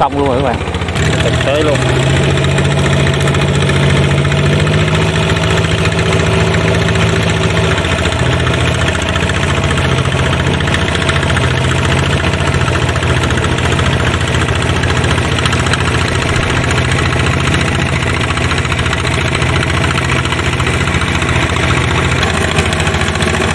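A small tractor engine chugs steadily nearby.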